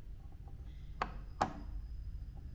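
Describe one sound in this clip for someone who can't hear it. A processor clicks softly as it is set into its socket.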